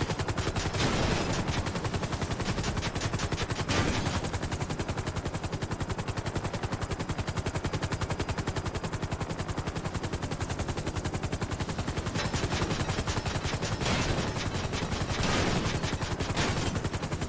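Helicopter rotor blades thump rapidly and steadily.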